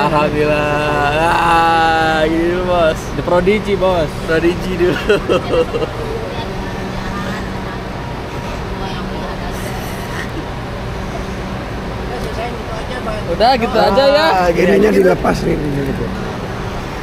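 A young man laughs and talks cheerfully up close.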